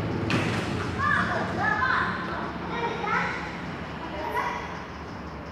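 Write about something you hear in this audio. Children shout nearby in an echoing hall.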